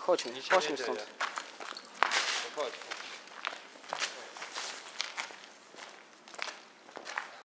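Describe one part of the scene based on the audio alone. Footsteps and rustling clothes sound as someone walks.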